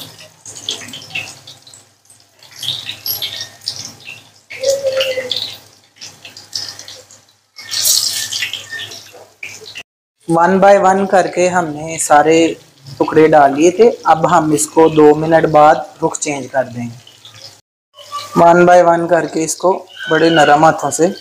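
Hot oil sizzles and crackles steadily in a frying pan.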